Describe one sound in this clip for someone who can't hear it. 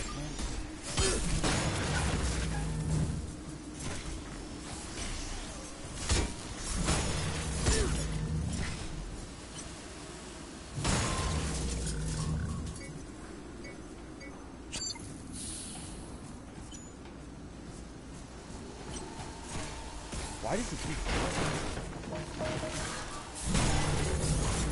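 Gunfire and explosions boom in loud bursts.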